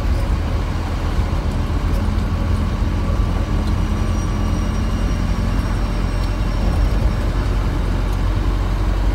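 Tyres roll steadily over the road.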